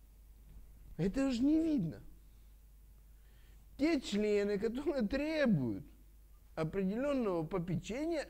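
A middle-aged man speaks expressively nearby, in pauses.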